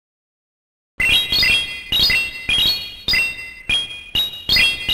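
Bright game chimes ring in quick taps.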